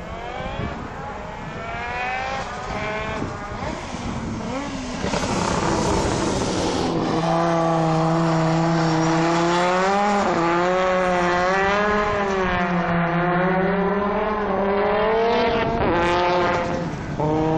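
A car engine revs hard and roars up and down in pitch.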